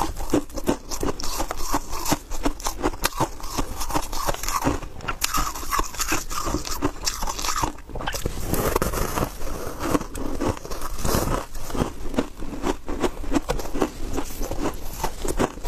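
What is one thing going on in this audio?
Gloved hands squeeze and rustle a block of shaved ice.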